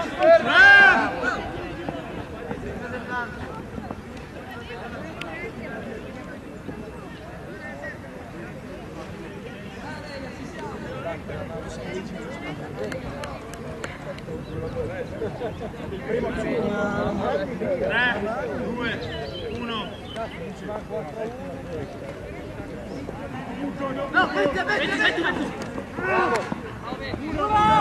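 Men shout to each other outdoors across a playing field.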